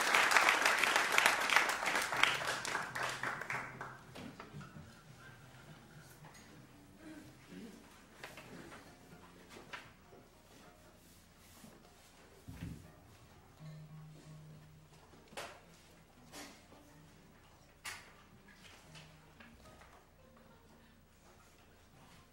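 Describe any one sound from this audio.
A small ensemble of plucked zithers and percussion plays loudly at first, then quietly and sparsely in an echoing hall.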